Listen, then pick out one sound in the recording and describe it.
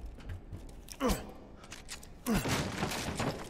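A gunshot blasts loudly.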